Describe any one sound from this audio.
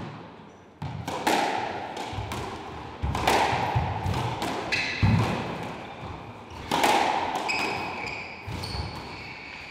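A squash ball smacks off rackets and walls with a sharp echo.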